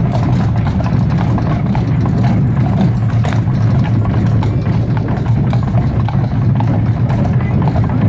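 Carriage wheels rumble over cobblestones.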